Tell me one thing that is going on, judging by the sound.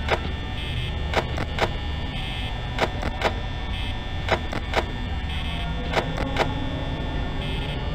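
A desk fan whirs steadily.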